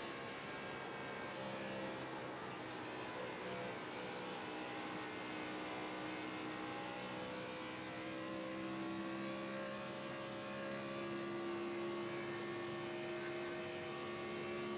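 A race car engine roars steadily at high speed, its pitch rising and falling slightly.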